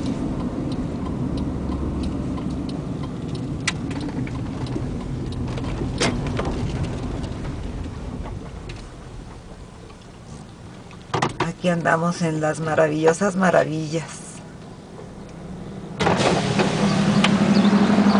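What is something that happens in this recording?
A car rumbles steadily as it drives along a road.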